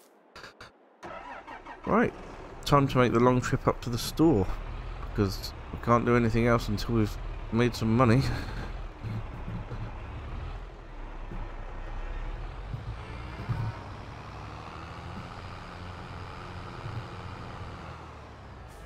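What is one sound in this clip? A tractor engine idles with a low rumble.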